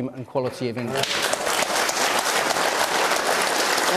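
A large audience applauds loudly in a big hall.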